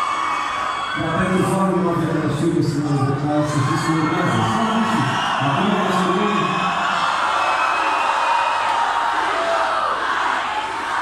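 An electric guitar plays on stage close by.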